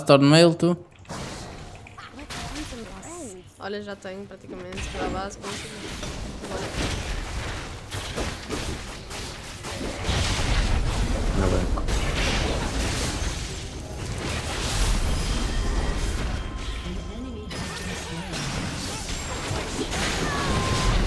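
Game battle effects clash and blast loudly.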